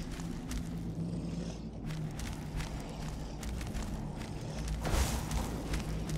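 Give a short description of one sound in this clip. Footsteps scuff softly on stone.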